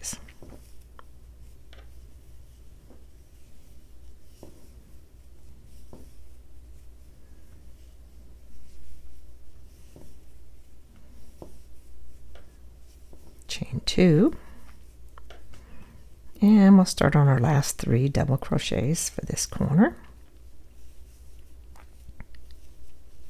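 Yarn rustles softly as a crochet hook pulls loops through stitches.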